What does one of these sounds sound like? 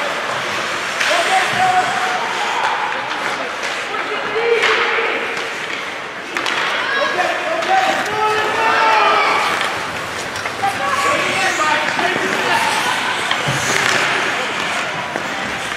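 Spectators shout and cheer in an echoing rink.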